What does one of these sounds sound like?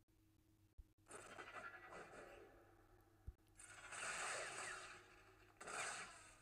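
Lightsabers hum and clash in a battle.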